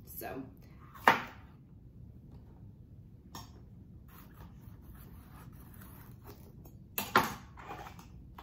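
A knife chops through a pepper onto a cutting board.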